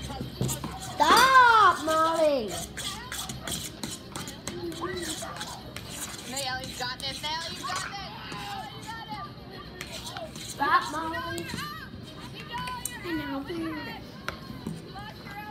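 A young girl talks close by, in a lively voice.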